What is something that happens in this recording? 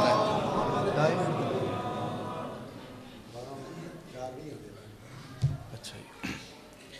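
A young man speaks with feeling into a microphone in a reverberant hall.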